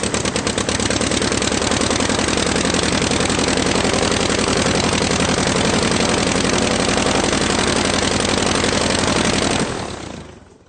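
A car engine runs loudly and steadily, then stops.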